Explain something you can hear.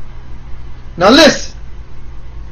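A man speaks a short, loud exclamation close to the microphone.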